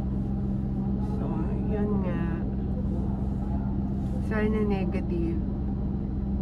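A young woman talks briefly nearby.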